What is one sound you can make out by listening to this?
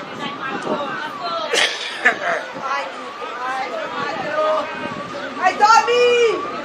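Boys shout and call out to each other outdoors.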